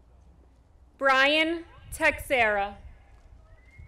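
A woman reads out names over a loudspeaker outdoors.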